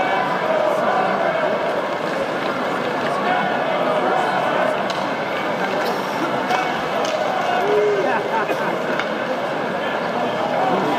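A crowd murmurs and chatters throughout a large echoing arena.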